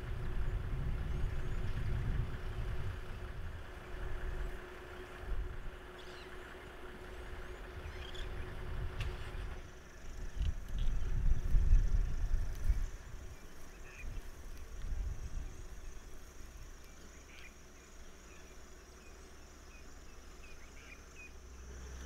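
A lion walks through dry grass with soft rustling steps.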